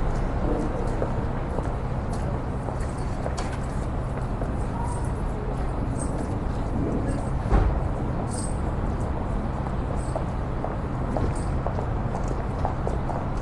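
Footsteps pass by on pavement.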